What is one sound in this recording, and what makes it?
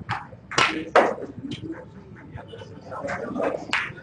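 Snooker balls knock together and roll across the table.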